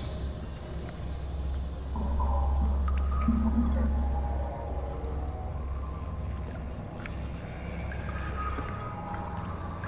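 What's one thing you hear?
Soft menu clicks sound as selections change.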